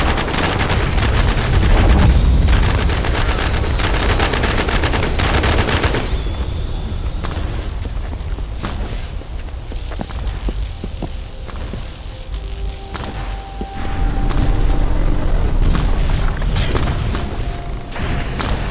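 Footsteps run quickly over grass and dirt.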